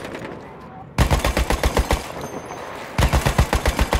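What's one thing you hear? A machine gun fires rapid bursts close by.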